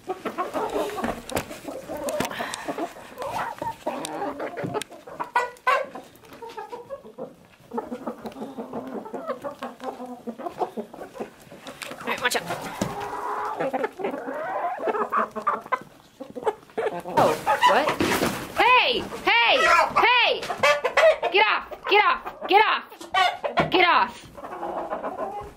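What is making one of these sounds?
Hens cluck and murmur softly.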